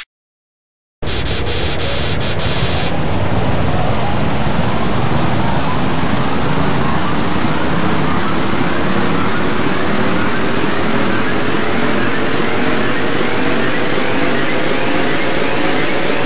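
A loud roaring rumble swells and builds.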